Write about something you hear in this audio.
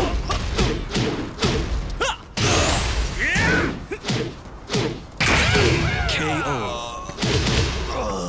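A fiery blast bursts with a whoosh.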